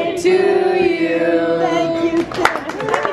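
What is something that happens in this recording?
A small group sings together nearby.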